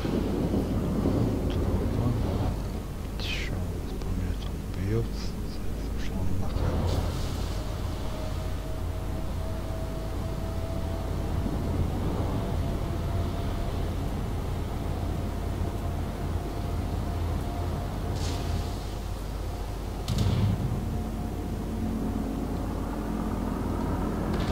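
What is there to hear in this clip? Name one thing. A ship's engine rumbles steadily over the water.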